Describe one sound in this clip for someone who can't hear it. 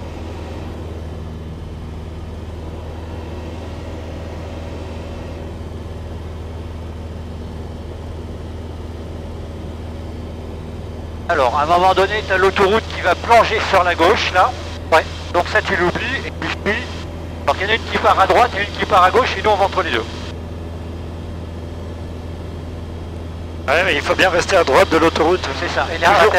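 A light aircraft engine drones steadily throughout.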